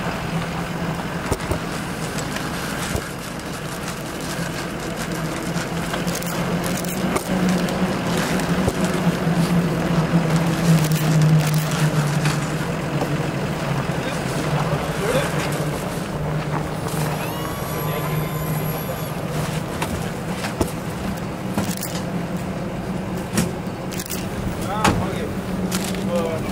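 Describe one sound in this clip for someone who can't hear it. A vehicle engine idles steadily nearby.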